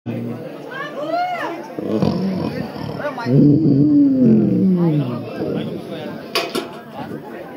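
A man sings loudly through loudspeakers outdoors.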